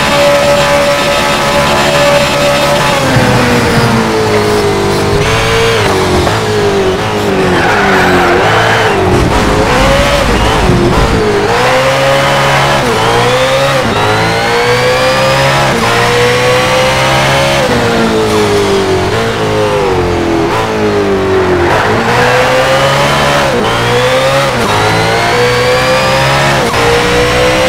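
A racing car engine roars loudly, revving up and down through the gears.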